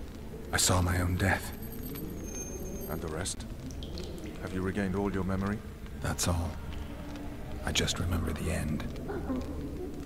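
A man speaks in a low, gravelly voice, close by.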